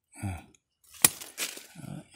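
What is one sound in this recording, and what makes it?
Pruning shears snip through a small branch.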